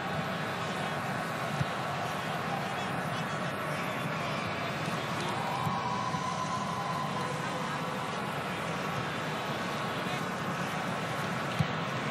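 A large stadium crowd murmurs and chants steadily.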